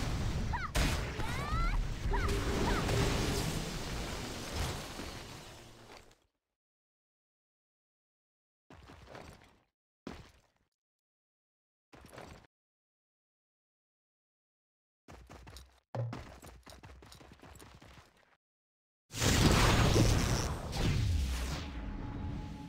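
Fighting sounds clash and whoosh in a game battle.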